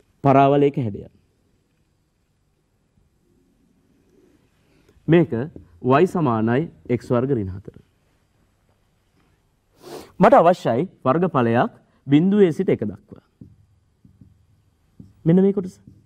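A young man speaks calmly and clearly into a microphone, in short bursts with pauses.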